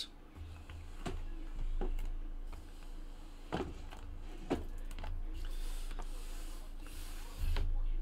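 Cardboard boxes knock as they are stacked on a table.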